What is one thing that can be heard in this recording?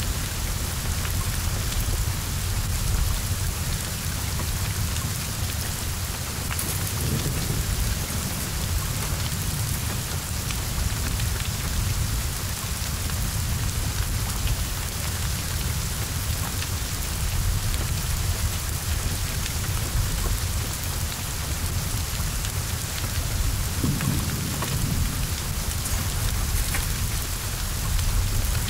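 Flames roar and crackle as a car burns.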